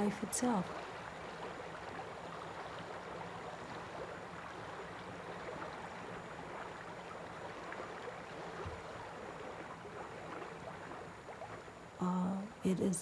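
Water laps softly.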